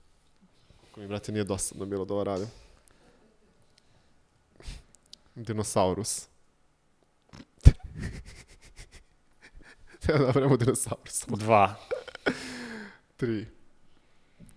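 A young man speaks into a microphone with animation.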